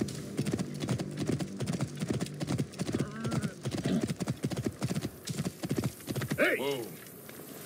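A horse's hooves thud quickly on a sandy track.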